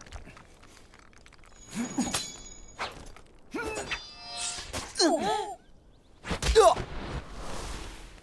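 A young man grunts with effort.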